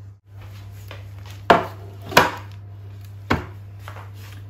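Foil crinkles as a baking tray is set down.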